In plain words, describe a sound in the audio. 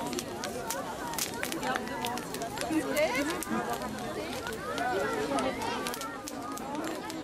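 A bonfire crackles and pops.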